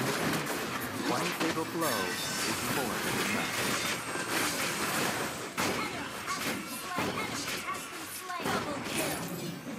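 Spell effects crackle and boom in a fast game battle.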